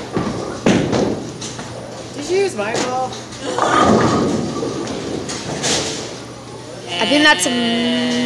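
A bowling ball rolls and rumbles down a wooden lane.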